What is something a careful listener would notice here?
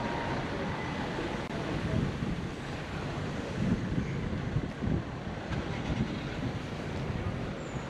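Wind rumbles and buffets outdoors throughout.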